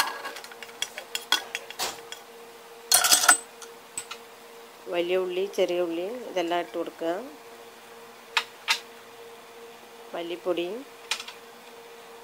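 Food is tipped into a metal pot with soft clatters and taps.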